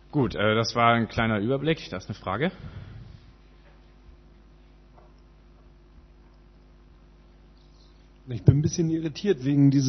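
A man speaks calmly into a microphone, heard through a room's loudspeakers.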